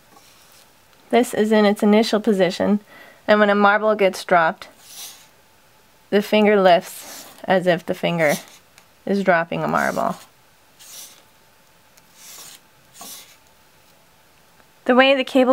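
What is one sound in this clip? A small cardboard wheel rattles softly as a hand turns it back and forth.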